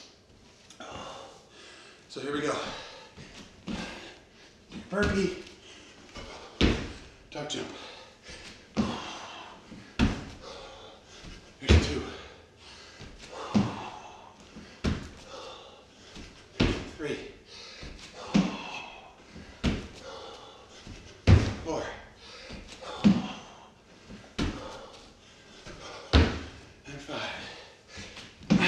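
A man breathes heavily.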